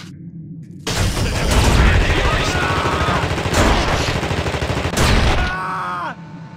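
Gunfire rattles loudly in rapid bursts.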